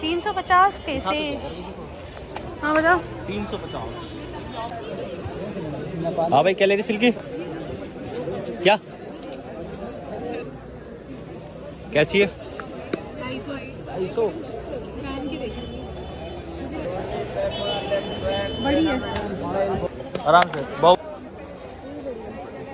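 A busy street crowd murmurs all around.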